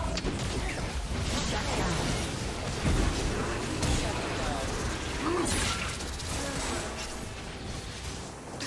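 Game spells and hits crackle and whoosh in a fast fight.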